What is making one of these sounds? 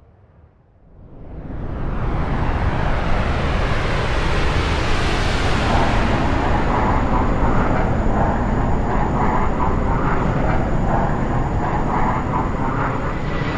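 Jet engines roar overhead, swelling to a loud, steady rumble.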